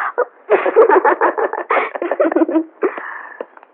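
A woman sobs and speaks with emotion up close.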